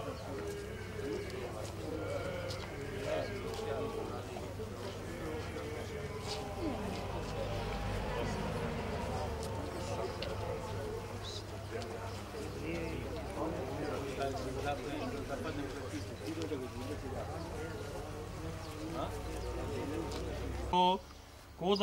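A crowd of men and women chat outdoors.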